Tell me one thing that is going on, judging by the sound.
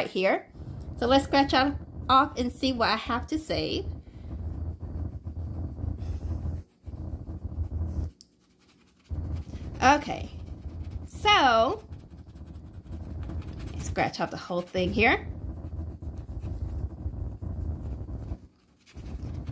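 A coin scratches across a card in quick strokes.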